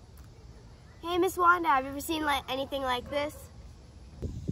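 An older girl speaks calmly, close by.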